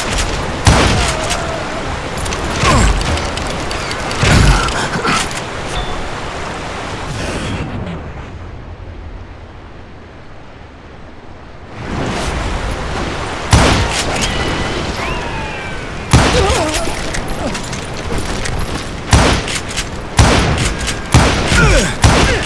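Gunshots fire in loud, sharp bursts.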